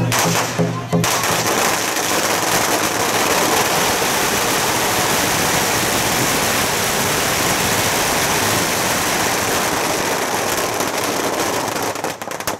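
Firecrackers crackle and pop in a long, dense burst.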